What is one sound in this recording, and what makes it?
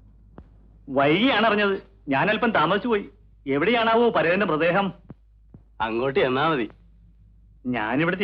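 A man speaks loudly and with emotion, close by.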